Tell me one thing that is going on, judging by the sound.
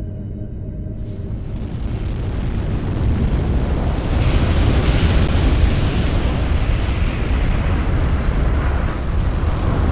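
A deep rumbling roar of fire swells and crackles.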